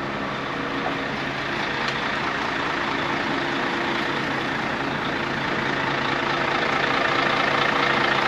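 A truck's engine hums steadily nearby.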